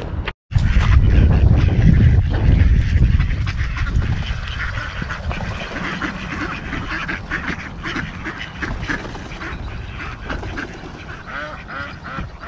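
Many ducks quack and chatter close by.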